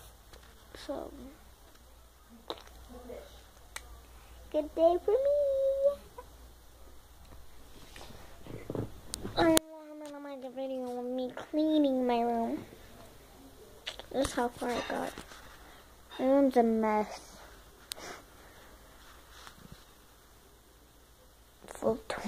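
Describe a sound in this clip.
A young girl talks and sings playfully, close to the microphone.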